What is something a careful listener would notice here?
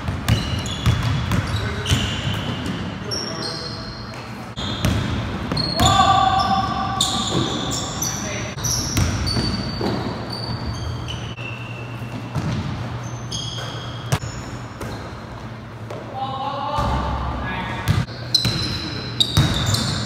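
A basketball bounces and thuds on the floor.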